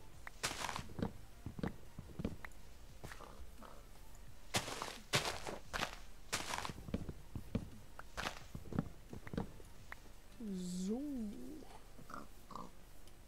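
Wood and leaves crunch in quick, sharp taps as blocks are broken.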